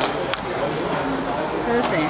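A plastic wrapper crinkles.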